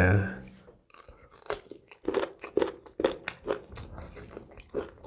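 Food crunches and squelches as a man chews close to a microphone.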